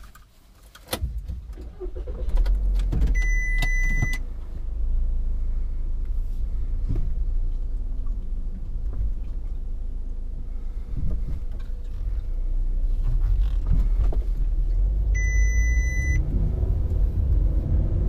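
A car engine starts and hums steadily.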